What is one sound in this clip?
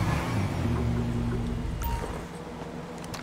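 A motorcycle engine hums while riding.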